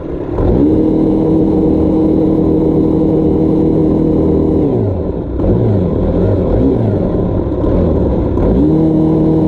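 A small motor drones loudly, drops and wavers in pitch, then rises again.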